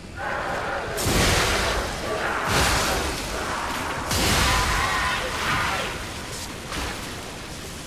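Electric crackles burst loudly in a fight.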